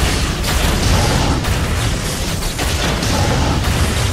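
A laser beam fires with a crackling hum.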